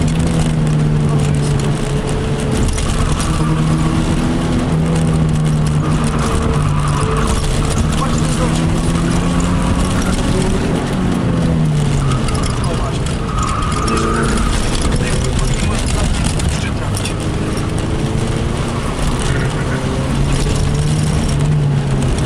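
Tyres rumble and road noise roars steadily beneath the car.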